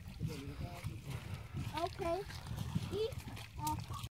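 Water splashes as a man wades in.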